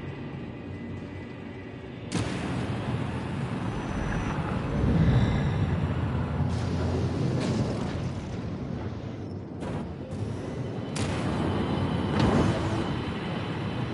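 Energy blasts zap and crackle overhead.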